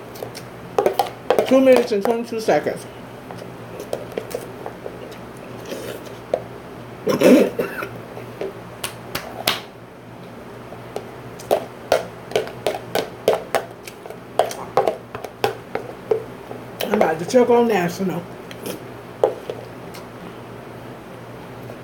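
A spoon clicks against a plastic container.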